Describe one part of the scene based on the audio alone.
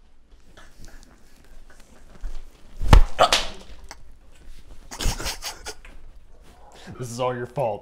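A second young man laughs.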